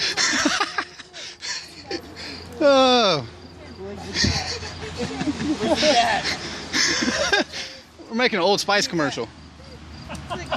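Several men talk and laugh nearby.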